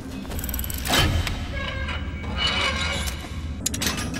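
A heavy metal safe door creaks open.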